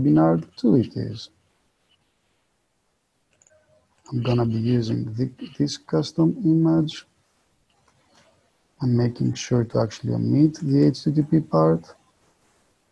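A man speaks calmly into a close microphone, explaining in short bursts.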